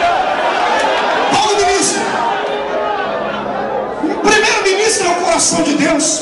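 A man speaks with passion through a microphone and loudspeakers.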